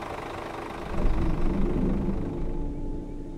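A bus door closes with a hiss and a thud.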